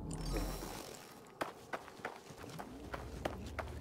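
Footsteps crunch on gravelly ground.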